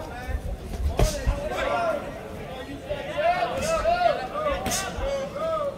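Boxing gloves thud sharply against a body.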